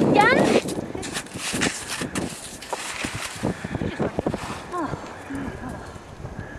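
Skis crunch and scrape on snow.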